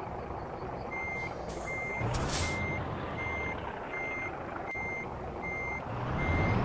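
A reversing alarm beeps at an even pace.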